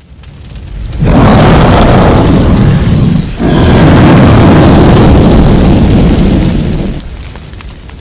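Fire roars loudly in a great blast.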